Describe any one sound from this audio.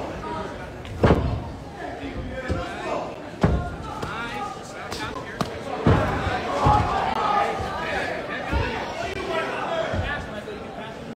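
Gloved fists thud into a body.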